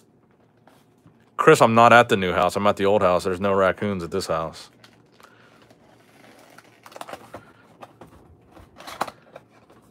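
Plastic wrap crinkles and tears.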